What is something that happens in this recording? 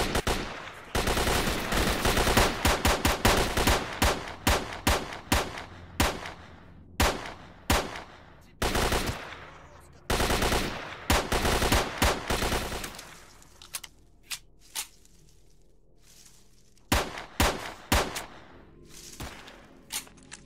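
A pistol fires shots in quick bursts, each echoing briefly.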